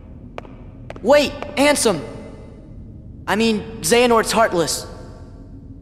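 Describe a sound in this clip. A young man calls out urgently.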